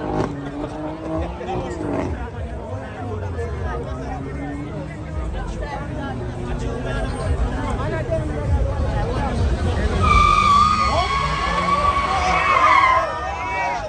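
A large crowd outdoors talks and shouts excitedly.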